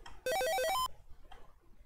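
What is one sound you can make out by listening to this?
A retro computer game plays a quick run of buzzy beeps.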